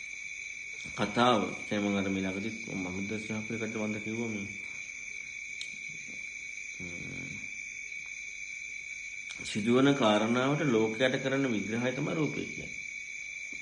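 A man speaks calmly to a gathering, heard through a microphone.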